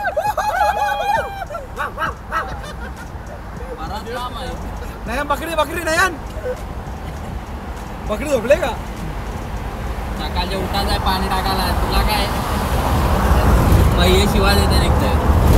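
A young man talks and laughs close by.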